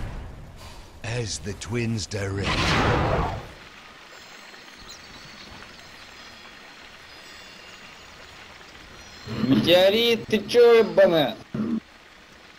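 An elderly man talks calmly into a microphone, close by.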